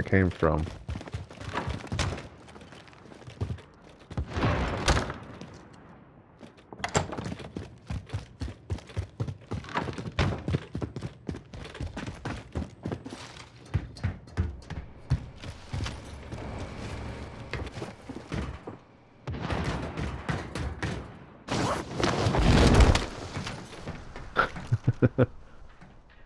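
Boots run quickly on hard steps and a ringing metal roof.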